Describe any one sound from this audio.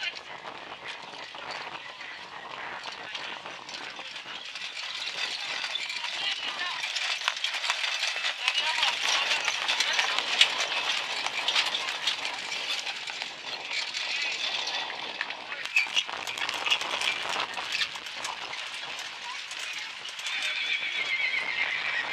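Carriage wheels roll and rattle over dirt.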